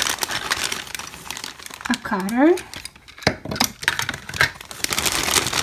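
Plastic toys clatter against each other.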